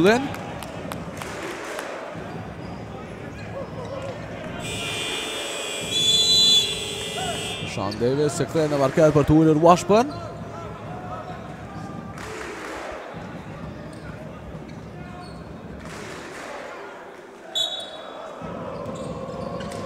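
A crowd of spectators murmurs and cheers in a large echoing hall.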